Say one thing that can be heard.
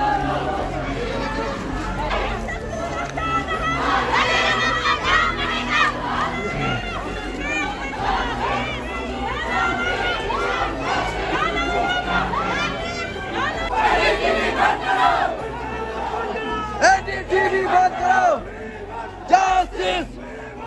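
A large crowd of men and women chants and shouts together outdoors.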